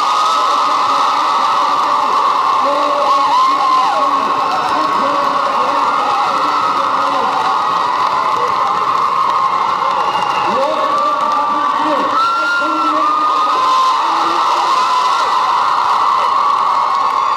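Roller skate wheels roll and squeak on a hard floor in a large echoing hall.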